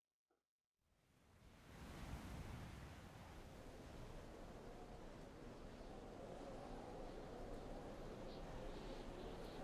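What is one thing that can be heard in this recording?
A strong wind roars steadily in a snowstorm.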